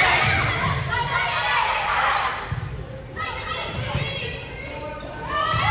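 A volleyball thumps off hands.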